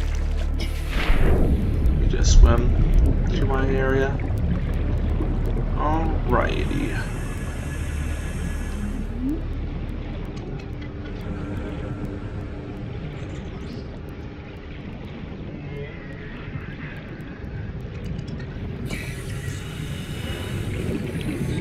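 Water rumbles and churns in a low, steady underwater hush.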